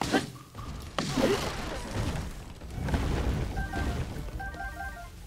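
A magical burst whooshes and crackles loudly.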